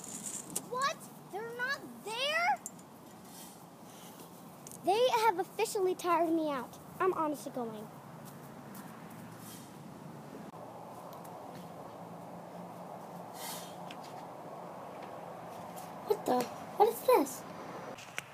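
A young girl speaks and sings playfully close by.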